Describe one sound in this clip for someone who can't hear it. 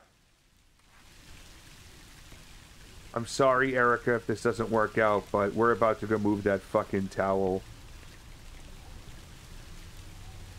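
Heavy rain pours steadily.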